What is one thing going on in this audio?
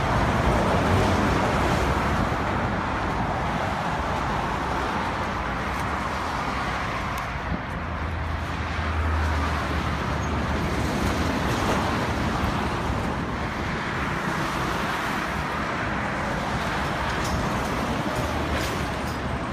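Traffic roars past on a road outdoors.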